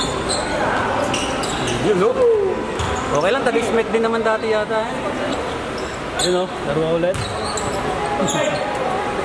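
Young men shout to each other across an echoing indoor hall.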